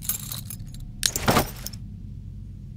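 A zipper opens on a bag.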